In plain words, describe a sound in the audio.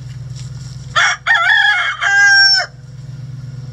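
A hen squawks loudly close by.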